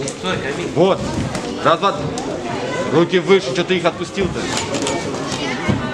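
Boxing gloves thud with quick punches.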